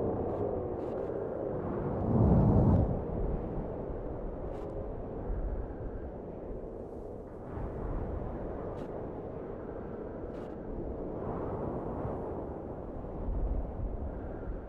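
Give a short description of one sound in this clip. Wind blows steadily in a low, rushing roar.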